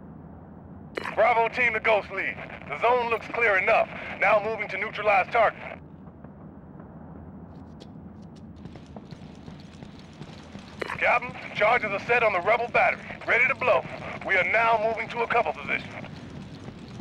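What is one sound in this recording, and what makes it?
A man speaks calmly over a crackly radio.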